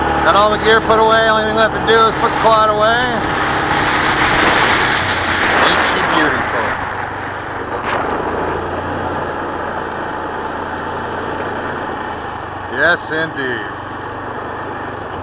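An all-terrain vehicle engine revs up and down while driving.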